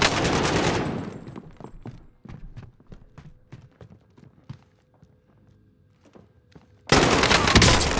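Footsteps thud on wooden floors and stairs.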